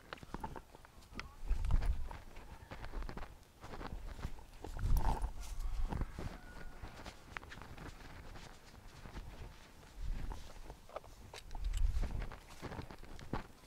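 Footsteps rustle through tall grass outdoors.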